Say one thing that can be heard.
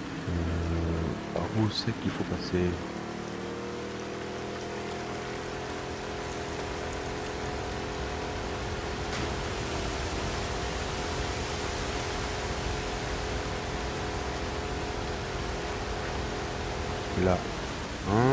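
Water splashes and rushes around a moving boat.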